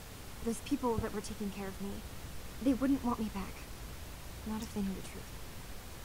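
A young woman speaks calmly and wearily.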